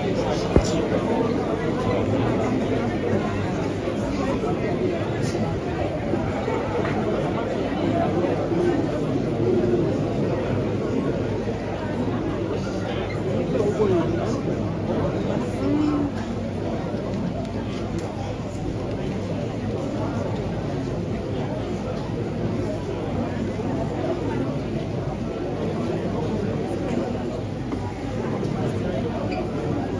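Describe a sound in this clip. A large crowd of men and women chatters in a big echoing hall.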